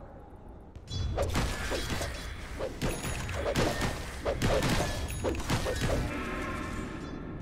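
Game spells burst and weapons clash in a busy fight.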